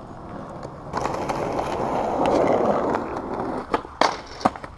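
Skateboard wheels roll over rough asphalt.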